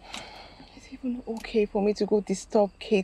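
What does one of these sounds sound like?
A woman speaks quietly and emotionally, close by.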